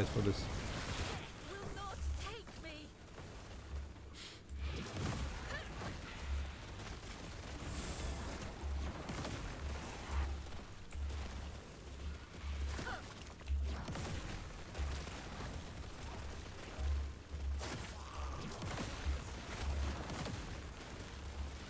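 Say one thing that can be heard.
Magic spells burst and crackle in quick succession.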